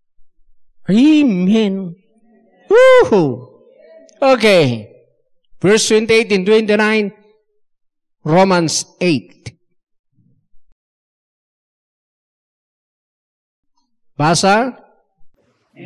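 An elderly man preaches with emphasis into a microphone, in short bursts with pauses.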